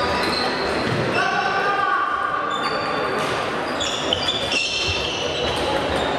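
Two players rally with quick back-and-forth hits of a table tennis ball.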